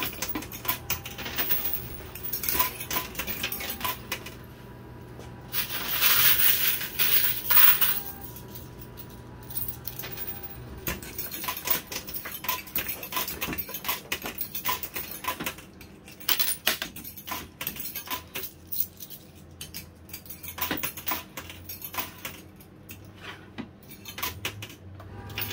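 Coins clink and clatter as they drop onto a metal tray.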